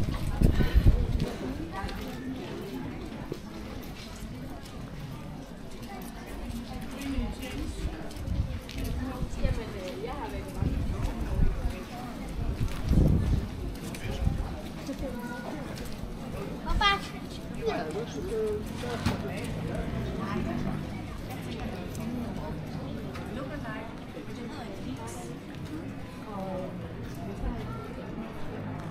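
Footsteps tap on wet paving stones.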